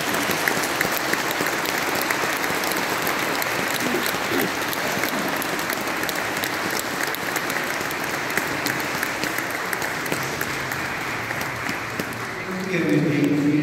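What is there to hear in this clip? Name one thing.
An audience applauds in a large echoing hall.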